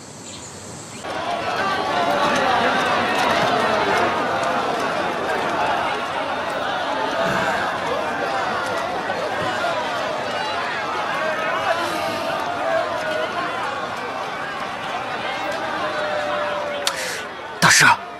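A crowd of people chatters in a lively murmur.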